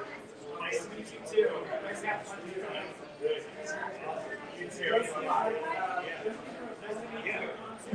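Men and women chat in a crowded room nearby.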